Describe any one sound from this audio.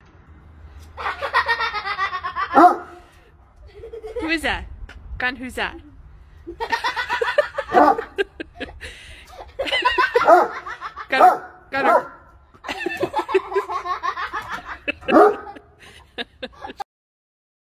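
A large dog barks loudly and repeatedly outdoors.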